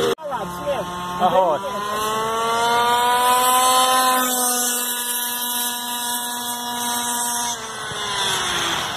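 A small remote-control car's motor whines at high pitch, holding steady, then dropping slowly as it moves away.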